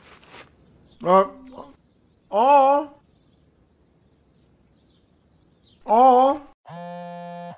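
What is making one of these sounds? A man exclaims loudly and with animation, close to a microphone.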